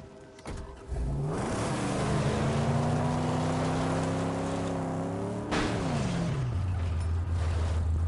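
A car engine starts and revs loudly, rising and falling.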